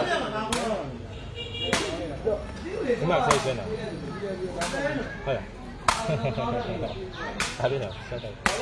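A foot kicks a rattan sepak takraw ball with sharp smacks.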